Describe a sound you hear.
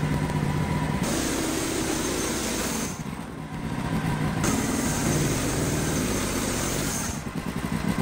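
A band saw blade cuts through a log with a high hiss.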